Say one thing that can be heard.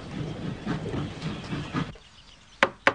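A steam engine hisses and rumbles nearby.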